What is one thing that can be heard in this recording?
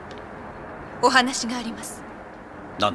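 A young woman speaks seriously.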